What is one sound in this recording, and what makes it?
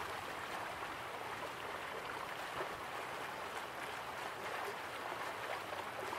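A small waterfall splashes steadily into a pool.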